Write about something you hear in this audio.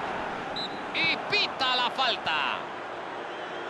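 A referee's whistle blows several sharp blasts.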